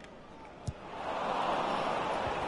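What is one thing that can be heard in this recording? A stadium crowd roars from a football game.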